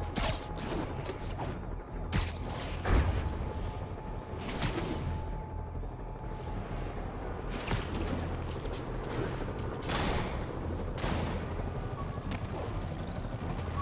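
Wind rushes past during a fast swinging flight.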